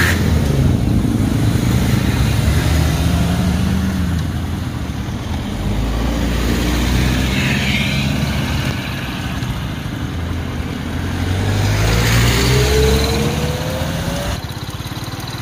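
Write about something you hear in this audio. Car engines hum as cars drive slowly past.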